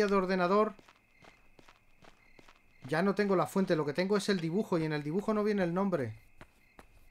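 A middle-aged man talks close to a microphone.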